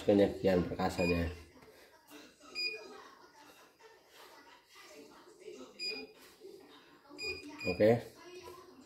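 A machine's buttons beep with short, high electronic tones several times.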